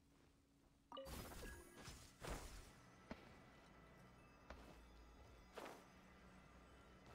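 Game sword strikes and magic bursts crackle during a fight.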